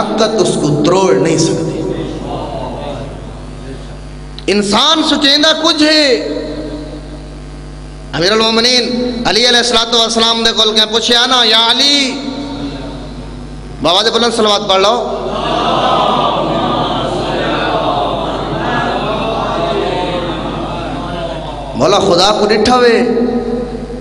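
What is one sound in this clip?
A man speaks forcefully into a microphone, his voice echoing through loudspeakers.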